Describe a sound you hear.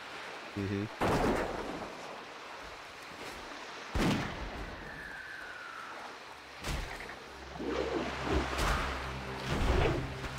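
Game sound effects thud and clash in short bursts.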